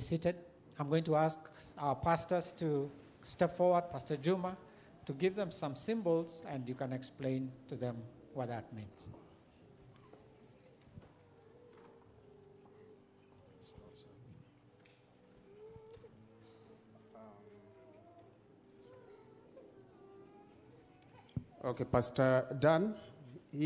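An elderly man speaks through a microphone and loudspeakers in a large echoing hall.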